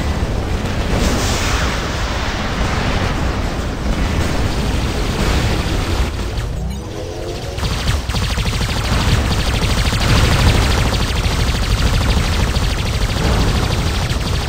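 Guns fire in rapid bursts.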